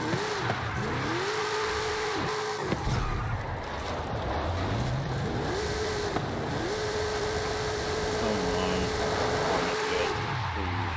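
Tyres screech on the road surface.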